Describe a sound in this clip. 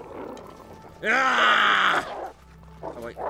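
A wolf snarls and growls up close.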